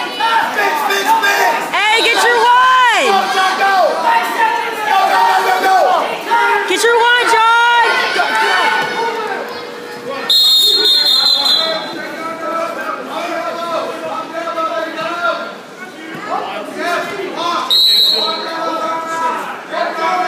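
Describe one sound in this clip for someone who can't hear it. A crowd of men and women shouts and cheers loudly in an echoing gym.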